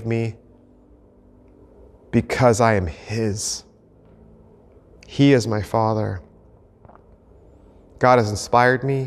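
A man speaks emphatically into a close microphone, in short phrases with pauses.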